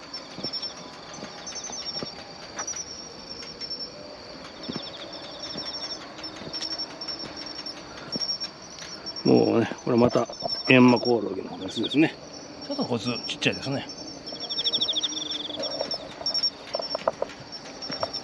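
Crickets chirp in quick, rhythmic bursts outdoors.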